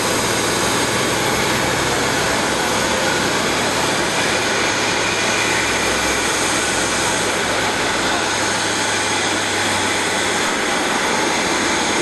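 A tow tractor's engine hums.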